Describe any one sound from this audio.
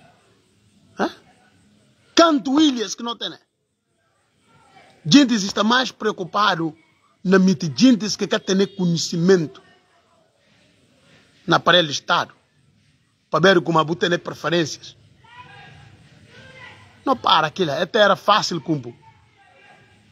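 A man speaks with animation close to the microphone, in short bursts with pauses.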